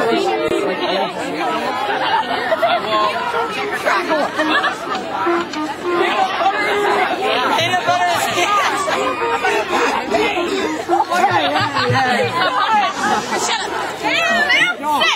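A crowd of teenagers chatters and laughs close by.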